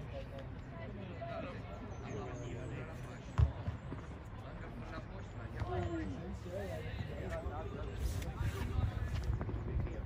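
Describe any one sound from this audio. Men nearby shout and call out with excitement.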